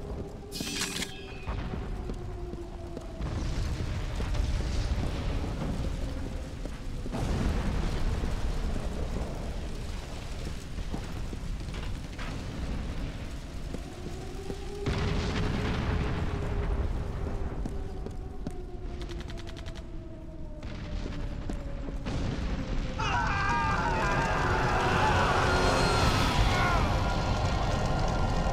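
Fires roar and crackle nearby.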